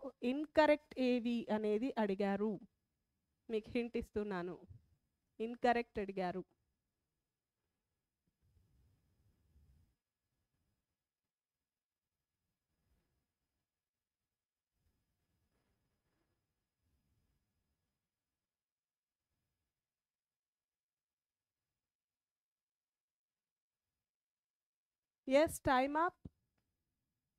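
A woman speaks calmly into a close microphone, with long pauses.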